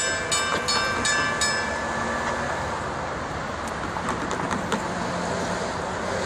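A passenger train rumbles along the tracks, moving away.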